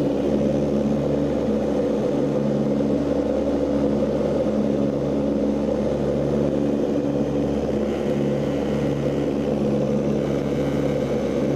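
Propeller engines drone loudly and steadily, with a low throbbing hum.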